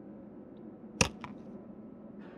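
A game item drops into place with a sharp clack.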